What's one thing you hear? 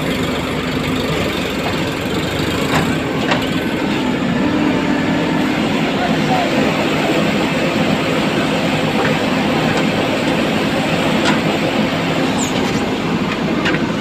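A diesel engine rumbles steadily close by.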